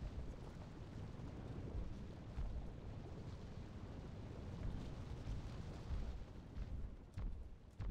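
Electricity crackles and sizzles.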